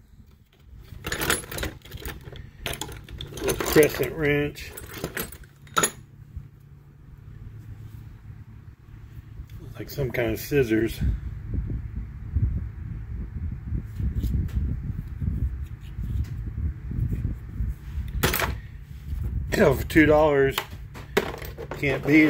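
Metal tools clatter and rattle in a plastic box.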